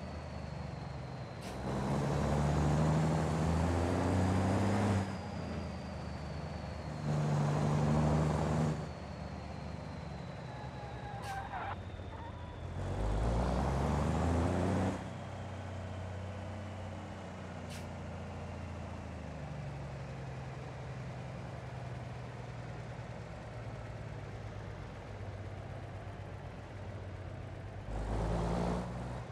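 A diesel truck engine idles with a low rumble.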